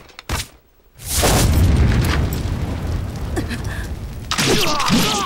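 An explosion roars into a rumbling blaze of fire.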